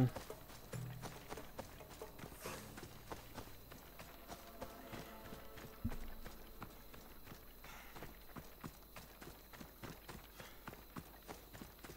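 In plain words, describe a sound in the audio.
Footsteps run quickly through tall grass.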